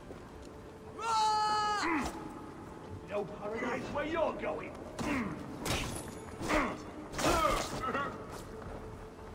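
Men grunt and shout while fighting.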